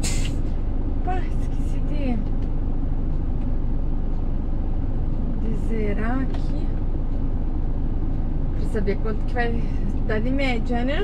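A young woman talks close by in short bursts.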